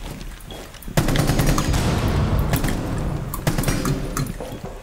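Rapid gunshots fire in bursts, loud and close.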